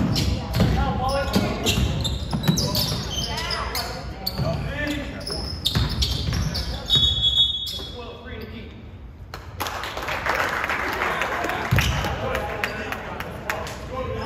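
A basketball bounces repeatedly on a wooden gym floor.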